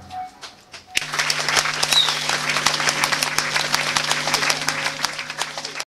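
An electric bass guitar plays loudly.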